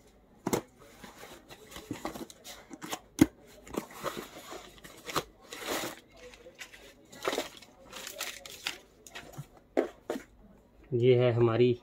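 Cardboard flaps rustle and crinkle as a box is opened.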